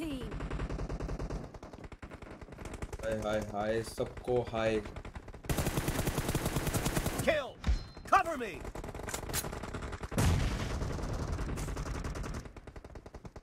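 Rapid gunfire rattles from a video game.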